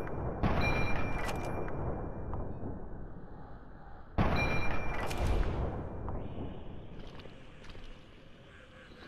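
A laser weapon fires sharp zapping blasts that rumble and fade.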